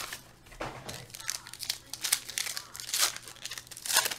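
Hands tear and crinkle a foil wrapper.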